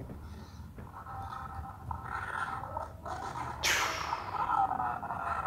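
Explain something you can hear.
An energy blast whooshes and crackles.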